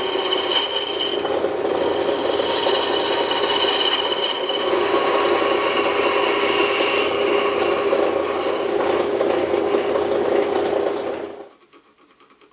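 A wood lathe hums steadily, then winds down.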